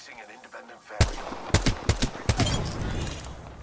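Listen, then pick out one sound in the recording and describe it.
Gunshots fire in sharp single cracks.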